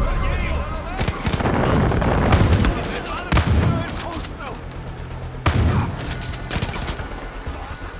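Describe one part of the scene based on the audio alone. Gunshots fire loudly in quick bursts.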